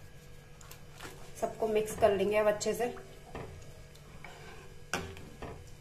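A metal spoon stirs liquid in a pan, scraping and sloshing.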